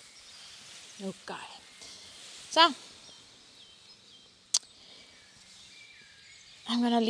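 A young woman speaks in short bursts nearby.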